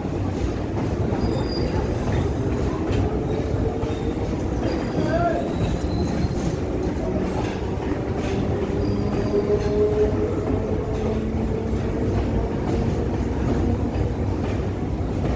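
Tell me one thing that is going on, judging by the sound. A train rumbles steadily along the tracks close by.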